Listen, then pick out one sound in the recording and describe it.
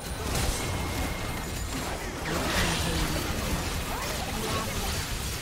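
Magic spells whoosh, crackle and burst in a busy video game battle.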